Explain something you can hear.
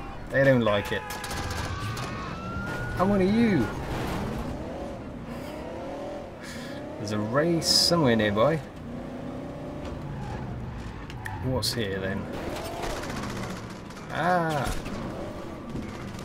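A car engine revs and hums.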